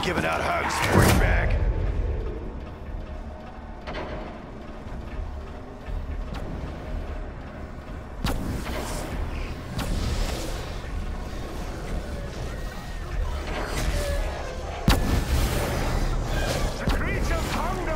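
A pistol fires sharp single shots.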